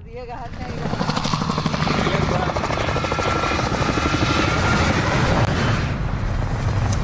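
Helicopter rotors thump loudly overhead.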